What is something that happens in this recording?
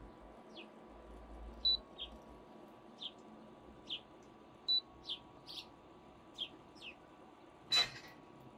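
Water pours in a thin trickle into a metal kettle.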